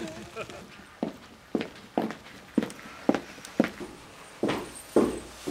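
Footsteps thud at a steady pace.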